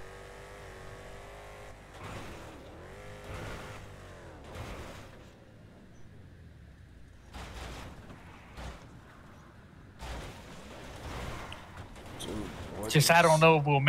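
A car engine roars and revs as it speeds along.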